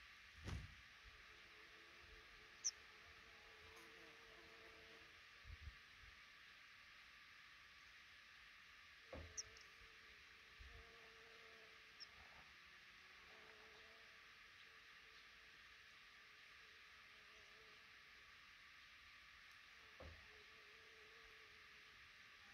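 Baby birds in a nest cheep faintly now and then.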